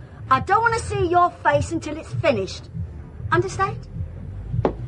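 An older woman speaks sharply, close by.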